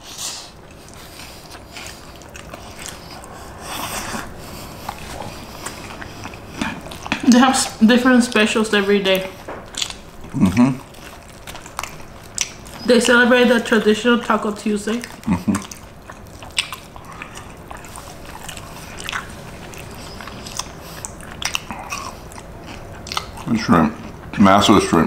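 Food is chewed noisily close to a microphone.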